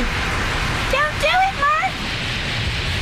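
A young girl cries out in alarm.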